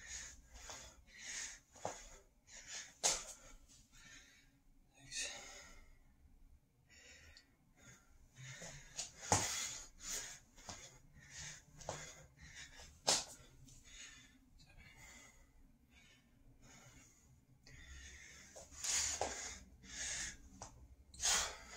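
Feet thud on the floor as a man does burpees.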